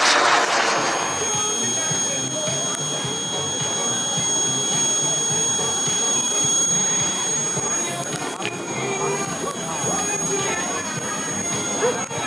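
A small jet engine whines steadily close by.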